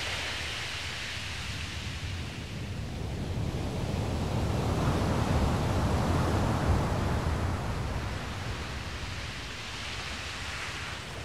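Small waves wash gently onto a shore.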